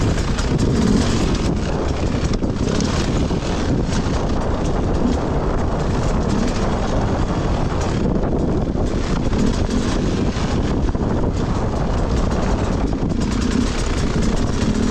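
A dirt bike engine revs and rumbles close by.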